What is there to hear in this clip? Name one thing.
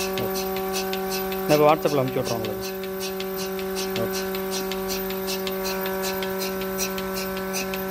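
A milking machine pulsator clicks in a quick, even rhythm.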